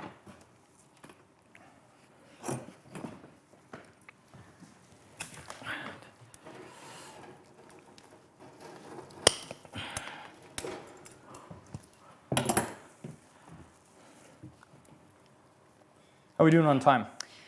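Pine needles rustle and snap as they are plucked by hand.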